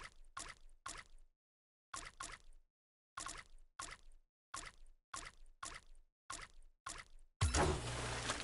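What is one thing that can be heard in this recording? Short electronic menu ticks sound in quick repeated bursts.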